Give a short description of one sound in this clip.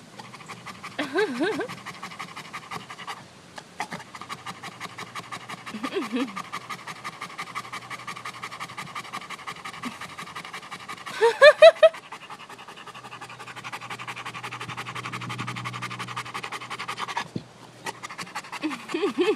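A dog gives short high whines.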